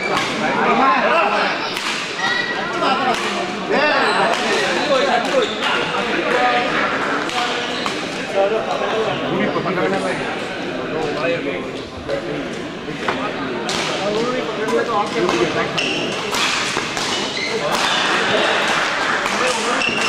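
Rackets smack a shuttlecock back and forth.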